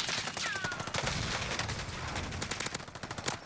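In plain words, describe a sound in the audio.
Rapid gunshots crack.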